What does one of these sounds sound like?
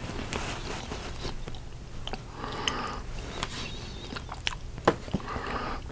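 A metal spoon clinks lightly.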